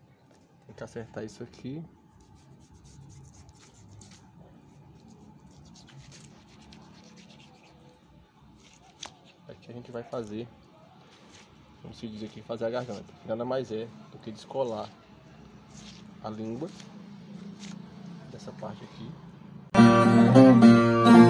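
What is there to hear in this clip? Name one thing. A knife slices softly through thick skin and flesh.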